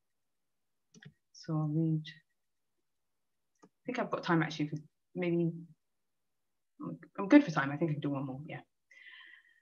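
A young woman speaks calmly and slowly, heard through an online call.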